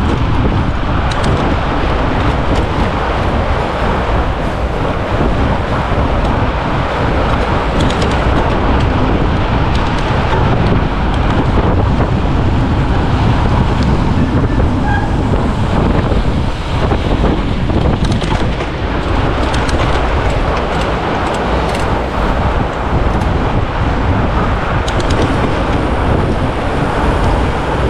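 Fat bicycle tyres crunch and hiss over packed snow.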